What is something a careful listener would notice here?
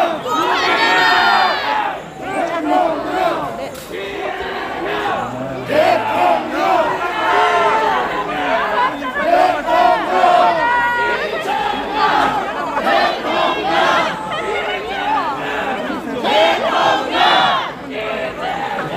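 A middle-aged man speaks to people around him at close range.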